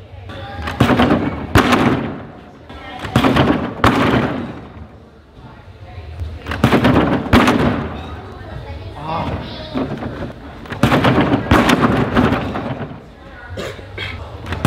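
A gymnast lands on a sprung mat with dull thuds.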